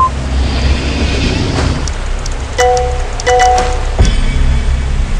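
A metal lever creaks and clicks as it turns.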